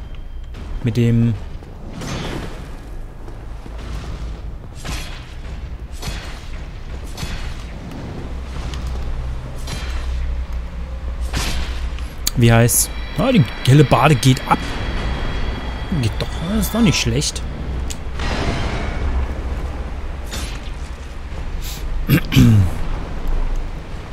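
Metal weapons clash and strike armour again and again.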